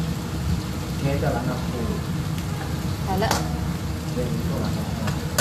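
A spatula scrapes and stirs food in a metal wok.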